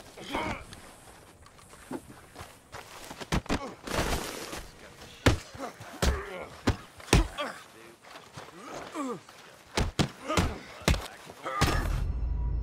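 Fists land heavy punches with sharp thuds.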